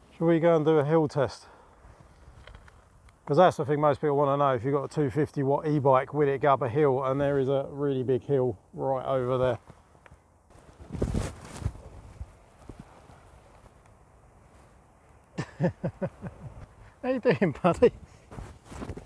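A middle-aged man talks calmly and closely outdoors.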